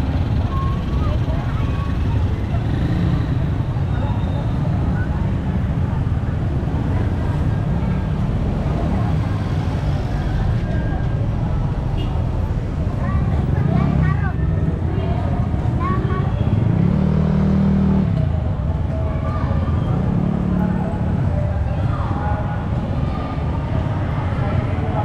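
Busy street traffic rumbles steadily outdoors.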